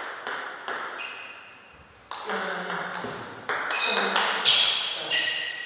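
A table tennis ball clicks off paddles in a rally.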